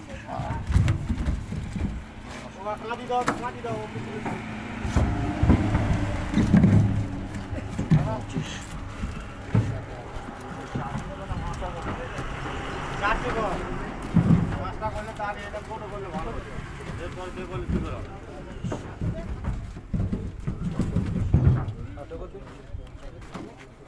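Coconuts knock and thud as they are handled.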